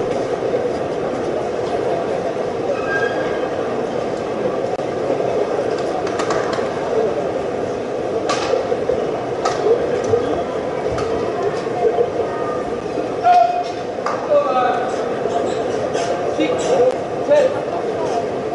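A crowd murmurs steadily in the background.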